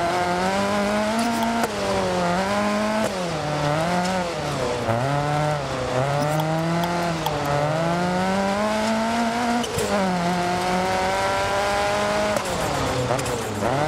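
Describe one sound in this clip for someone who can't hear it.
A rally car engine revs hard, rising and falling as the gears shift.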